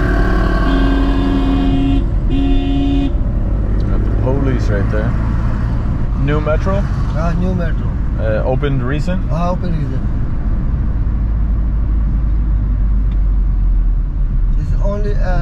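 A car engine hums steadily as tyres roll along the road.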